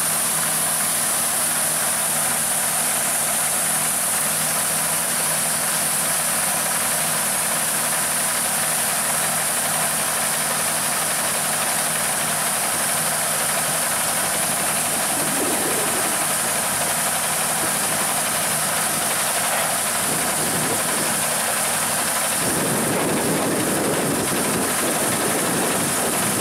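A threshing machine runs with a steady mechanical rattle and whir.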